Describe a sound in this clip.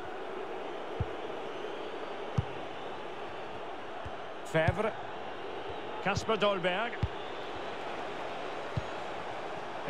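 A football is kicked with dull thumps.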